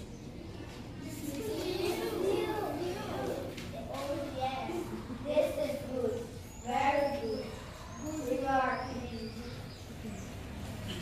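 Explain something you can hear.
A child speaks in a play, heard from a short distance.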